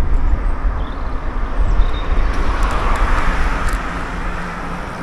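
Wind rumbles heavily across the microphone outdoors.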